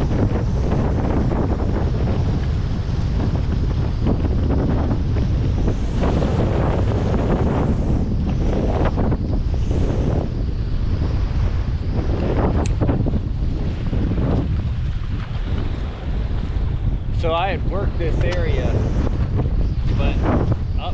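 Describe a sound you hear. Wind blusters steadily across open water.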